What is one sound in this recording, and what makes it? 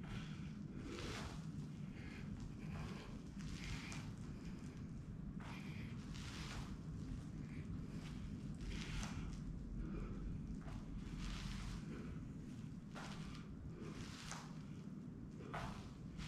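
A man breathes out hard in short bursts.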